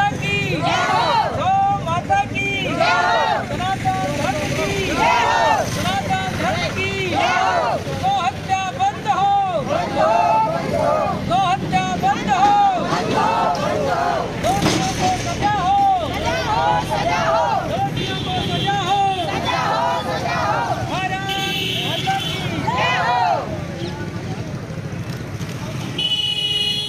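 A group of women sing and chant together loudly outdoors.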